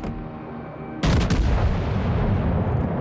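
A warship's heavy guns fire a loud, booming salvo.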